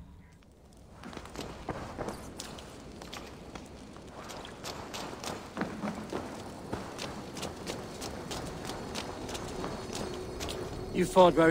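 Footsteps thud and scuff on the ground.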